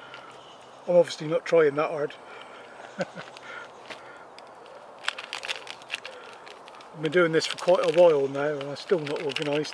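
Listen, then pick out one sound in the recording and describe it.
Wrapping paper rustles and crinkles in a man's hands.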